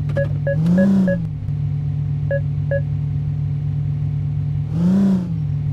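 A car engine briefly revs up and settles.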